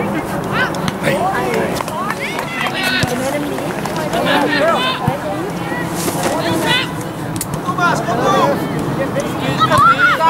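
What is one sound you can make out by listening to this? Young players shout and call out loudly outdoors across an open pitch.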